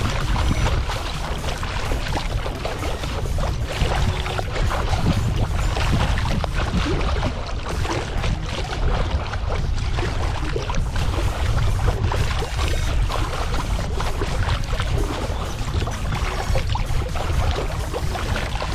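Wind rumbles steadily across the open water.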